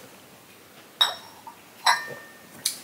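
A cup clinks onto a saucer.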